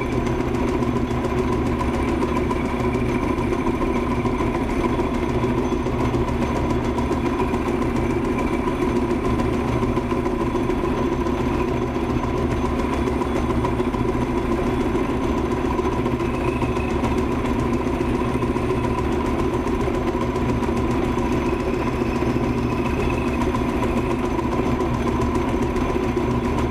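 A cutting tool scrapes and hisses against spinning metal.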